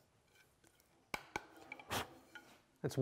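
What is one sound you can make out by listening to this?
A wooden mallet taps on wood.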